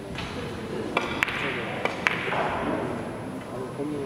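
Billiard balls click sharply against each other in an echoing hall.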